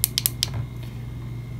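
A small button clicks several times.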